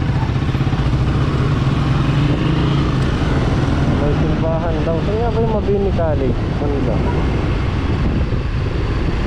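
Nearby motorcycles and tricycles drone in passing traffic.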